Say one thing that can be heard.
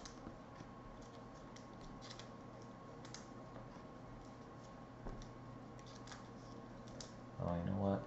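Trading cards rustle and click as hands sort through them.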